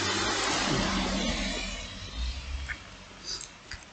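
A man chews food loudly.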